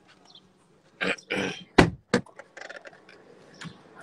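A car door handle clicks.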